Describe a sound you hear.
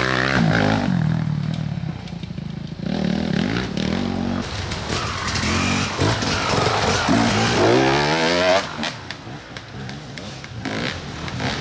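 A dirt bike engine revs and whines, rising and falling in pitch.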